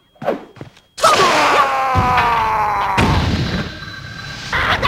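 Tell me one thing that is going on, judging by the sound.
An enemy bursts apart with a magical whoosh.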